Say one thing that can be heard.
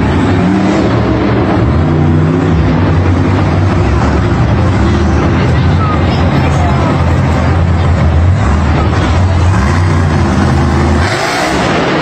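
A monster truck engine roars and revs loudly.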